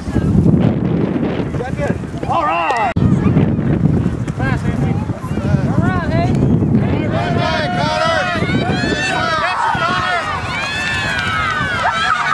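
Young children shout and squeal excitedly outdoors.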